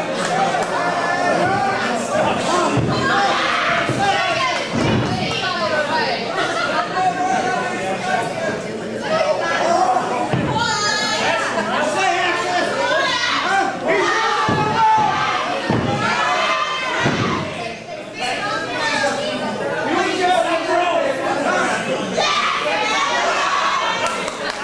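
A crowd shouts and cheers indoors.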